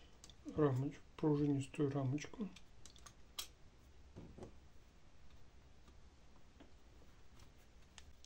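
A metal bracket clicks as hands fit it onto a circuit board.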